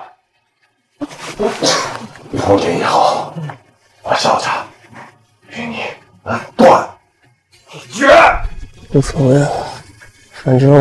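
A middle-aged man shouts angrily, close by.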